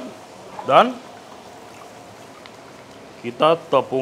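Water sloshes in a metal bowl.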